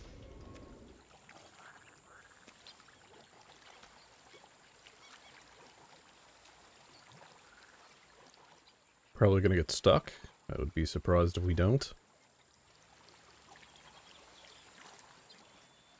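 A canoe paddle splashes through water.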